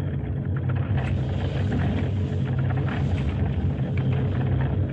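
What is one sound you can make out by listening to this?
A big paddle wheel churns and splashes through water.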